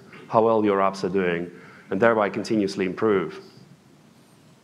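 A man speaks into a microphone in a room with some echo.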